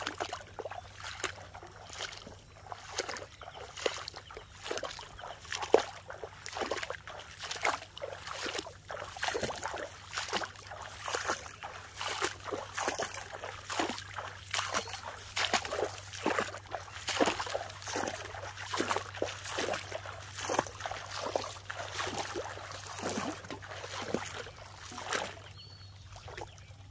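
Footsteps squelch and splash through shallow water.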